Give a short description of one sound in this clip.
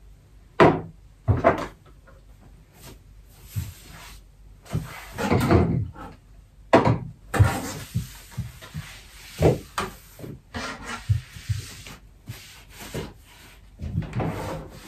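Small objects knock and clatter on a wooden top.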